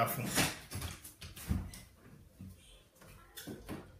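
A door handle clicks and a door opens.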